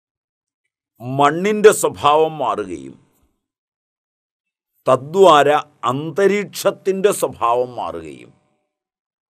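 An elderly man speaks emphatically and close to the microphone, with pauses.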